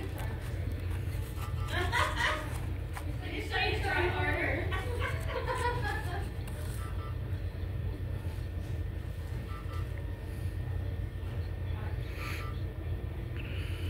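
Paper rustles as a sheet is handled close by.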